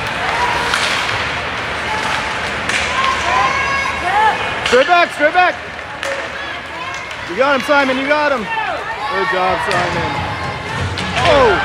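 Skates scrape across ice in the distance.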